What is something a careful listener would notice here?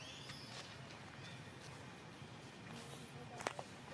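A monkey's footsteps rustle softly over dry leaves.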